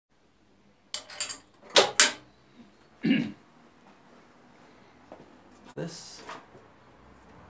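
Metal parts of a machine clank and knock sharply.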